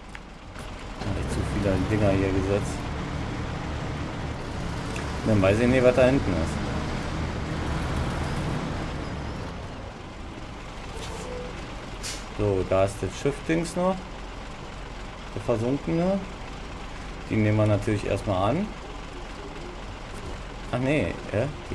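A truck engine rumbles and revs.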